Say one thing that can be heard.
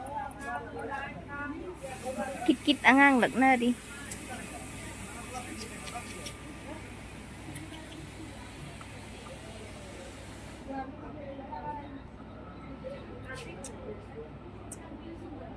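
Women and men chat nearby in the background.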